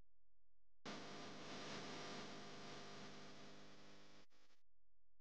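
Music plays over loudspeakers.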